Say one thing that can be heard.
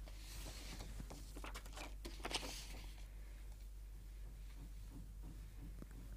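A pencil scratches lightly on paper.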